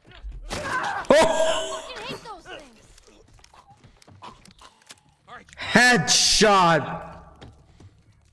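A young man shouts loudly and excitedly.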